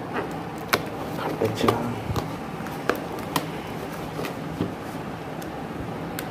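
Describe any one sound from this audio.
A cardboard parcel rustles and scrapes as hands handle it.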